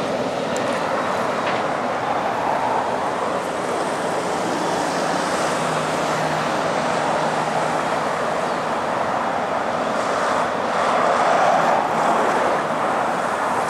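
A heavy truck engine rumbles steadily as it approaches slowly.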